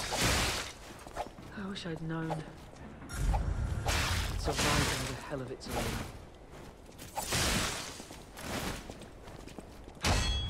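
Swords swish and clash in quick bursts.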